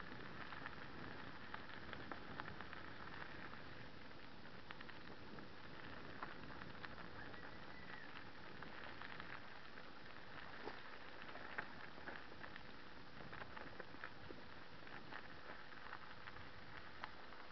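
Harnessed dogs pant as they run.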